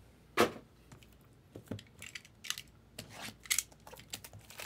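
A box cutter slices through plastic wrap.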